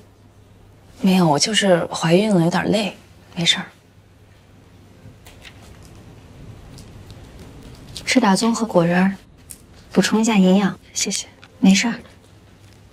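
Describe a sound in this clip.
Another young woman answers calmly.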